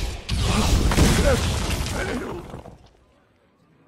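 A loud magical whooshing effect bursts out and quickly fades.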